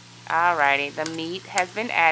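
A spoon scrapes and stirs food in a metal pot.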